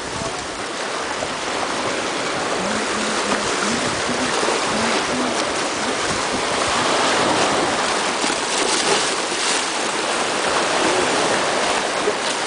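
Small waves lap gently against rocks outdoors.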